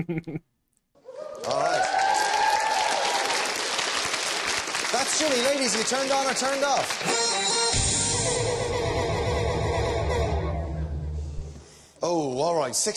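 An audience cheers and applauds loudly.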